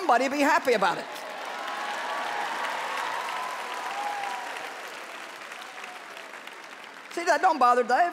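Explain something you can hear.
A large audience claps and laughs.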